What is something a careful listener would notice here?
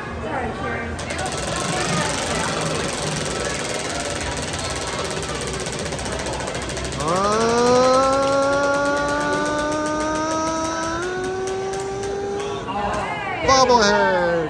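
A wheel spins with rapid ticking clicks that slow down.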